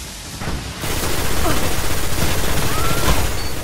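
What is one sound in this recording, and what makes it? Explosions burst close by.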